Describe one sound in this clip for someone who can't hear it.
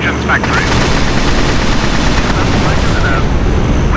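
A blast rumbles.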